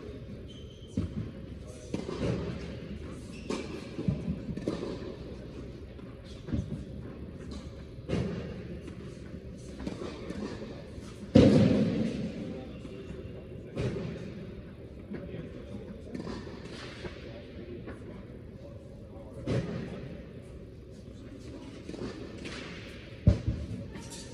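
Tennis balls are struck with rackets, echoing through a large hall.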